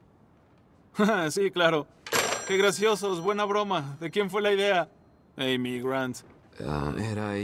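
A young man with a deeper voice talks on a phone.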